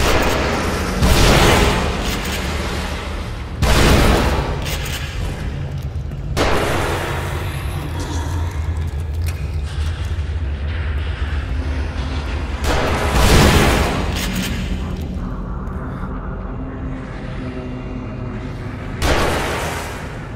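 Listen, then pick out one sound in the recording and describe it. A shotgun fires loudly with a booming echo.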